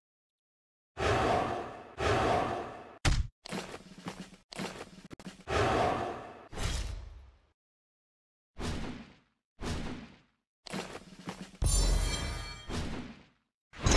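Weapons clash and strike in a fantasy battle, in short bursts.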